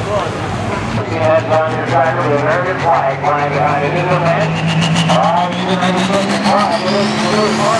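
A tractor engine roars loudly and climbs steadily in pitch.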